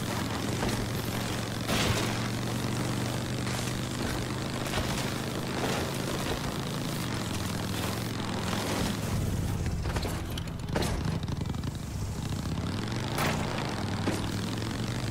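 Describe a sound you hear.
A motorbike engine hums steadily and rises and falls in pitch as it rides over rough ground.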